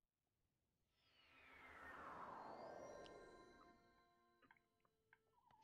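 A rushing magical whoosh swells and fades.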